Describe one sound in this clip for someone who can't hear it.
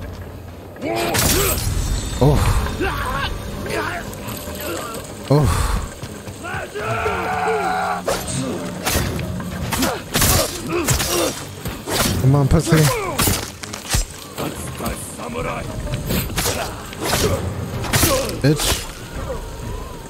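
Swords clash and ring sharply, again and again.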